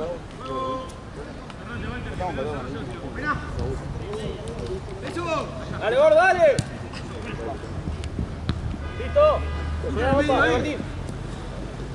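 Men shout to each other outdoors, from a distance and up close.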